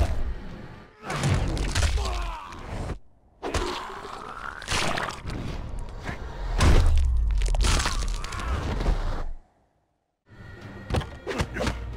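Heavy blows land with loud thuds and crunches.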